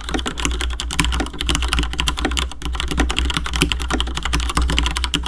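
Keys on a mechanical keyboard clack rapidly and steadily as someone types fast.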